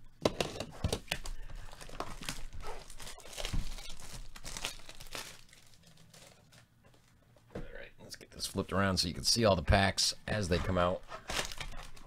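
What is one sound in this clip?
Gloved hands rustle and crinkle plastic wrapping on a cardboard box.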